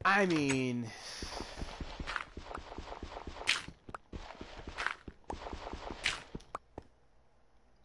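Stone blocks crack and crumble with quick repeated taps as they are broken.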